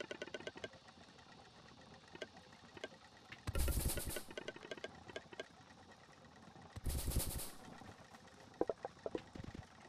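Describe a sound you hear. Light footsteps patter quickly.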